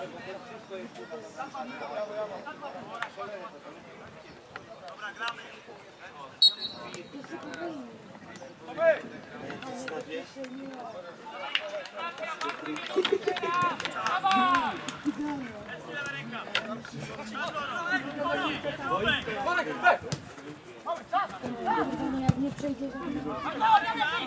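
Young men shout and call to each other at a distance on an open field.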